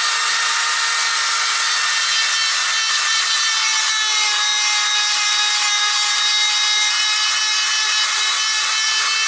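A small electric rotary tool whines steadily as it grinds into wood.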